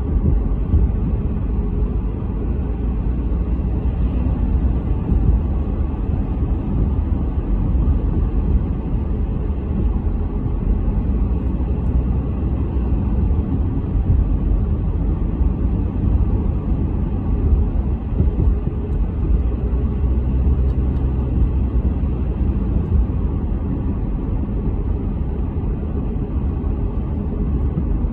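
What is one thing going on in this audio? Tyres roll on a paved road with a low steady rumble.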